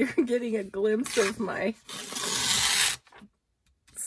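A tool scrapes firmly along a sheet of paper.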